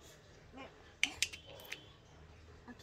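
Coins clink together.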